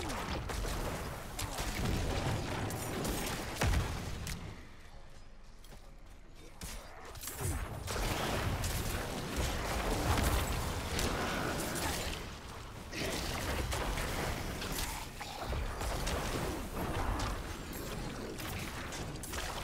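Weapons clash and strike again and again in a fast fight.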